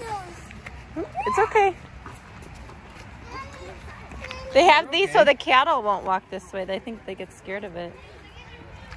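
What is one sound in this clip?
Young children talk and call out excitedly close by.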